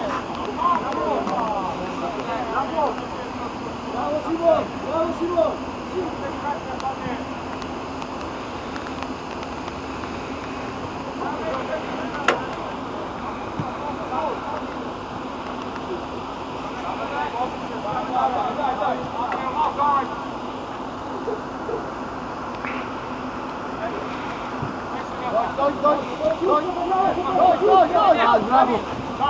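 Young players shout and call to each other across an open field.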